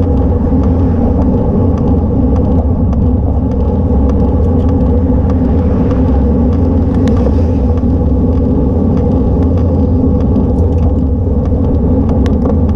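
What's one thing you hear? A bicycle chain and gears click and rattle.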